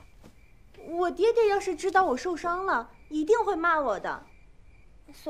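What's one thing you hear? A young woman speaks in an aggrieved, pleading tone, close by.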